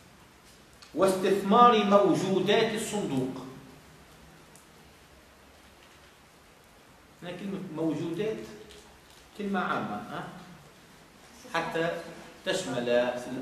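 A middle-aged man speaks calmly, in short phrases with pauses.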